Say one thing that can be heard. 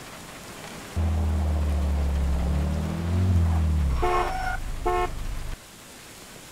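A car engine hums steadily, then revs and cuts out.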